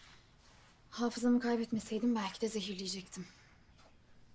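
A woman speaks calmly and quietly nearby.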